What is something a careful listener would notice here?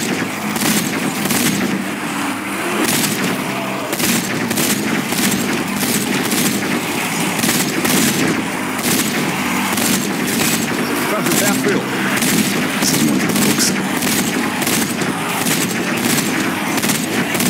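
Explosions boom and roar.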